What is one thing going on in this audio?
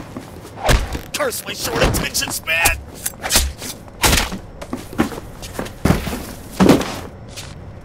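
Heavy blows and thuds land in a scuffle.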